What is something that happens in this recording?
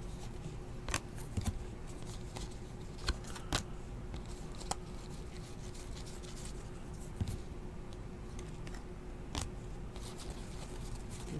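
Trading cards rustle and click as hands shuffle through them.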